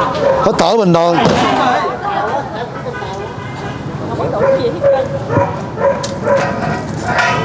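Several adults talk with animation close by in a small crowd.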